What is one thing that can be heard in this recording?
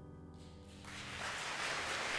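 An ensemble of instruments plays a final chord.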